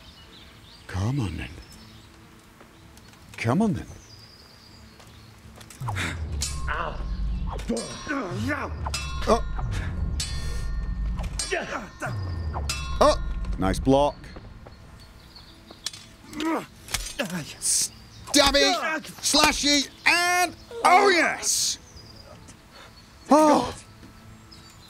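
Swords clash and clang with metal ringing.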